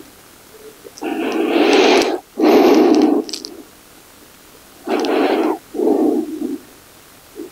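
A woman breathes slowly and deeply in and out nearby.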